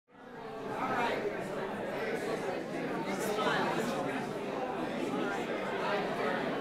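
A seated crowd of adults murmurs and chatters.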